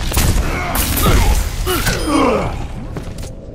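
A crackling energy beam zaps loudly in quick bursts.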